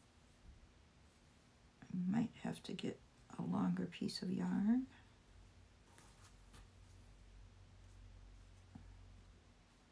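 Fabric and yarn rustle softly as hands handle them.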